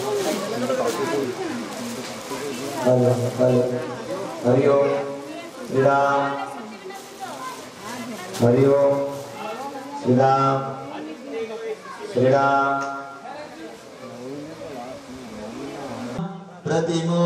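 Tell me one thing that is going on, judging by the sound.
Women sing together close by.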